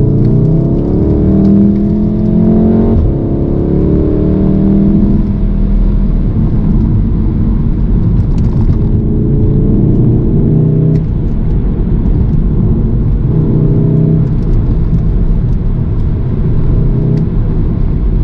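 A car engine revs hard and drops as gears change.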